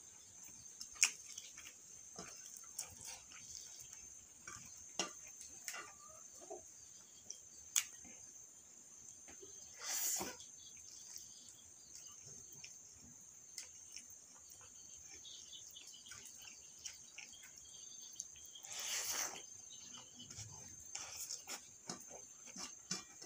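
Fingers squish and scrape rice against a metal plate.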